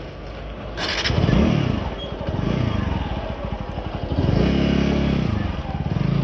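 A motorcycle engine revs up in short bursts.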